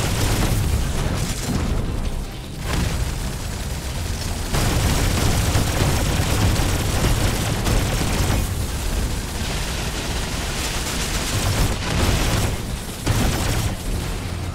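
Explosions boom and crackle repeatedly.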